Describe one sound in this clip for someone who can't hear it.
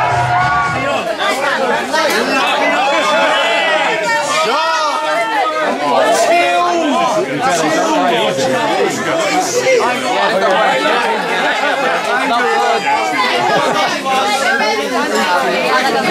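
A crowd of men and women chatter and cheer loudly outdoors.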